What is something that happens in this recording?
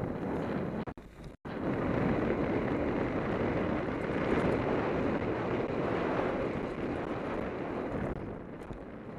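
Bicycle tyres rumble fast over a dirt trail.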